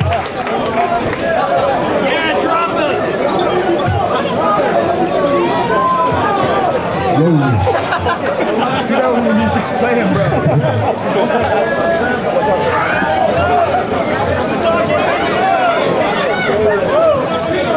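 A crowd chatters and shouts loudly all around in a large echoing hall.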